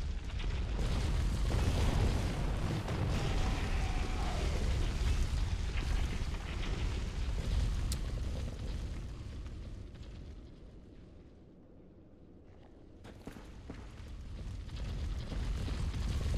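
A heavy sword swings and strikes with loud thuds.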